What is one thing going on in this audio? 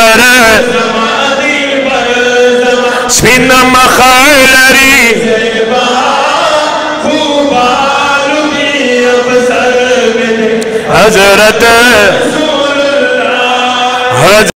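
An elderly man sings along in a high voice from further back.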